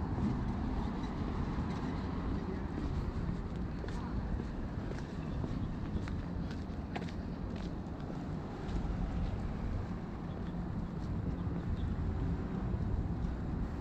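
Distant city traffic hums steadily.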